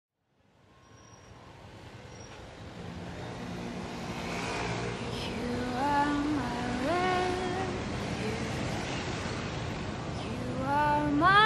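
Music plays over loudspeakers in a large hall and slowly grows louder.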